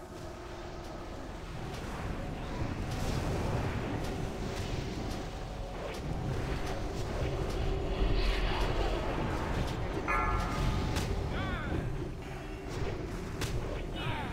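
Spell effects and combat sounds clash and whoosh in a game battle.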